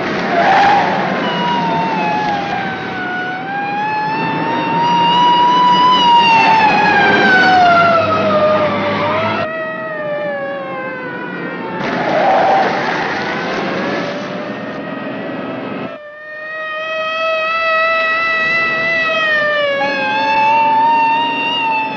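A car engine roars and changes pitch.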